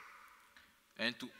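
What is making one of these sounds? A man speaks briefly, heard through a microphone.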